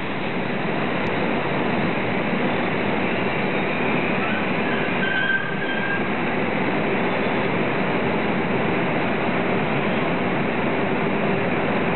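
An electric locomotive hums as it stands idle.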